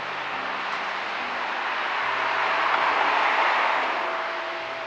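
A car approaches on a road.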